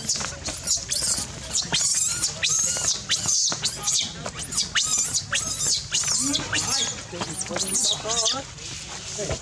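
A baby monkey squeals and shrieks loudly over and over.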